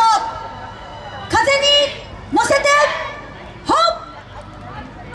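A group of young dancers shouts in unison, loud and close.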